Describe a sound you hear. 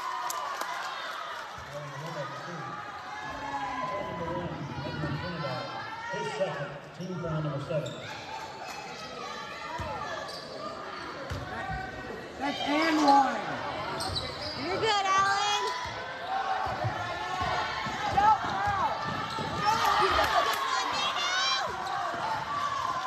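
Spectators chatter and call out in an echoing gym.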